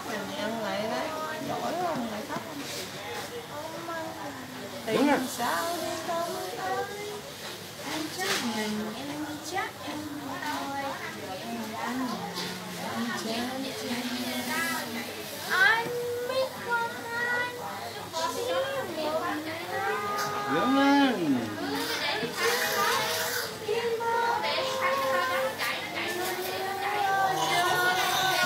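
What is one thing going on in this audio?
A middle-aged woman talks close by in an emotional voice.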